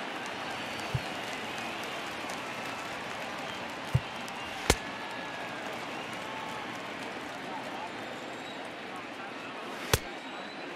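A stadium crowd murmurs steadily in the background.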